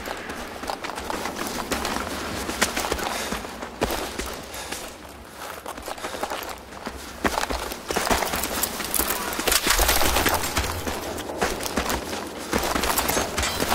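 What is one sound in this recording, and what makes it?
Footsteps crunch over loose rubble.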